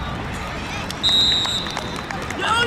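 A whistle blows shrilly.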